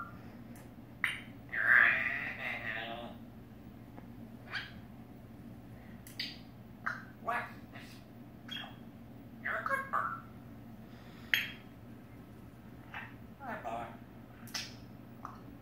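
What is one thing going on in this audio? A parrot clicks its beak close by.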